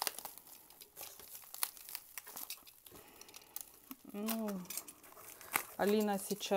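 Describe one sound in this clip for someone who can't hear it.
Bubble wrap crinkles and rustles in someone's hands.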